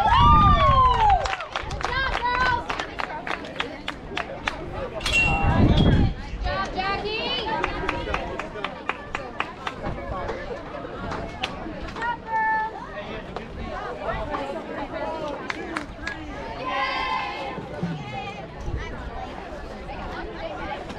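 Players clap their hands.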